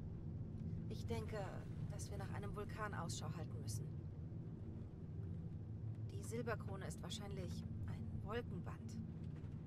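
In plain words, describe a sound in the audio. A young woman speaks quietly and calmly.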